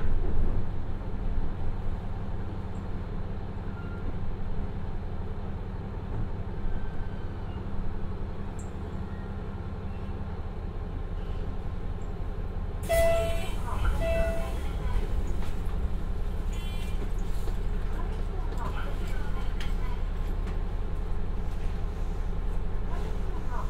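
A diesel engine rumbles steadily.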